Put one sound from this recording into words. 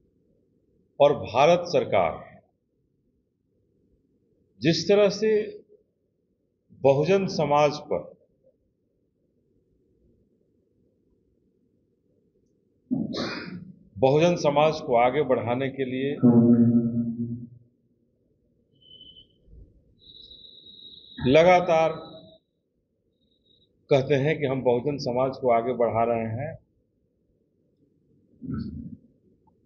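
A middle-aged man speaks into a microphone in short bursts with pauses.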